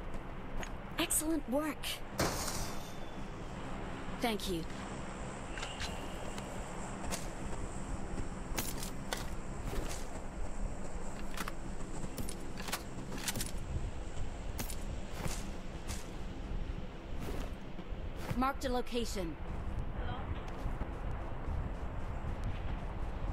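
Game footsteps rustle through grass.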